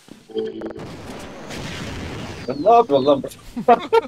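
A rocket launcher fires a shot.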